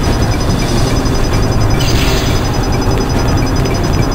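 A heavy metal door slides open with a hiss.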